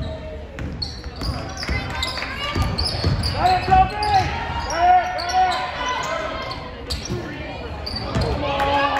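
Spectators shout and cheer in the echoing gym.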